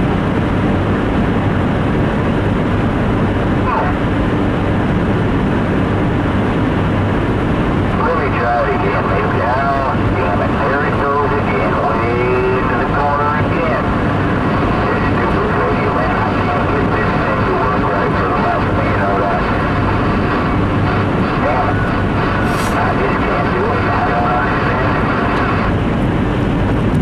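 A car drives steadily along a highway.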